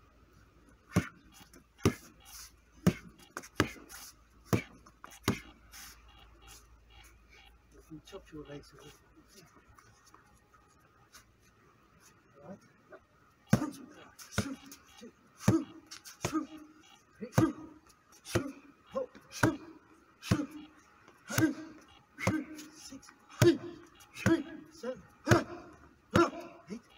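Kicks and punches thud sharply against a padded shield, over and over.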